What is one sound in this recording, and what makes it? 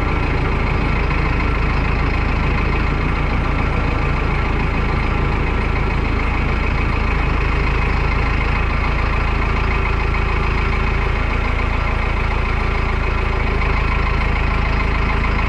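A petrol auger engine runs loudly and steadily.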